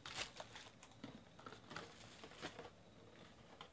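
A cardboard box rustles as it opens.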